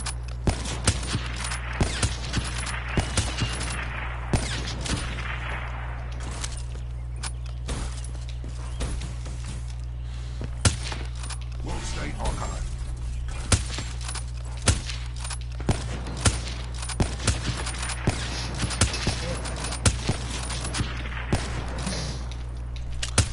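Gunshots crack sharply again and again.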